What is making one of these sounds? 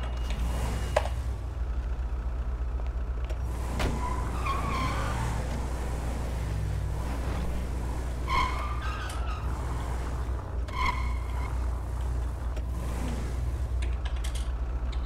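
A car engine hums as the car drives off.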